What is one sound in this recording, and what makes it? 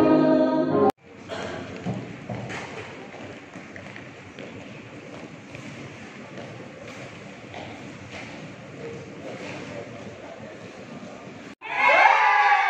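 Many young people murmur and shuffle about in an echoing hall.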